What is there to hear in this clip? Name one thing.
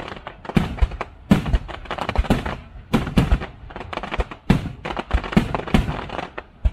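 Firework sparks crackle and fizz.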